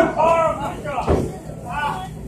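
A wrestler's body slams onto the ring mat with a heavy thud.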